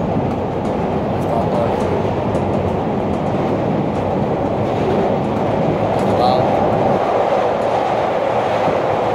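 Train wheels click and clatter over rail joints.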